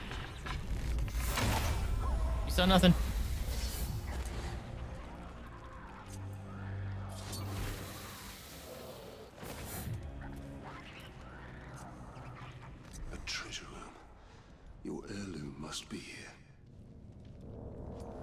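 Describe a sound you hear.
Game sound effects whoosh and clang.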